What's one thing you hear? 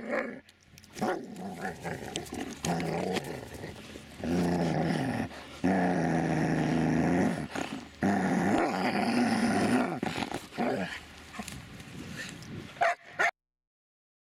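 A dog growls and snarls.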